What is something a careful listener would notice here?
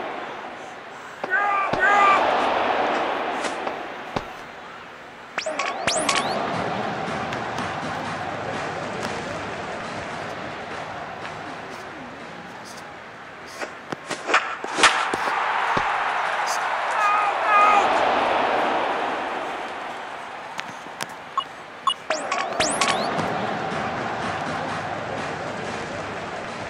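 A stadium crowd cheers and murmurs.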